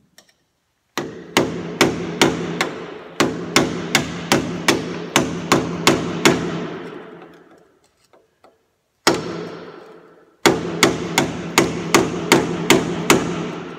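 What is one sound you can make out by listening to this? A hammer strikes a metal punch in quick repeated blows, ringing out.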